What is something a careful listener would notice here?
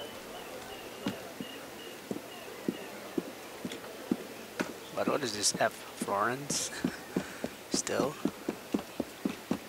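Footsteps tap quickly on a roof.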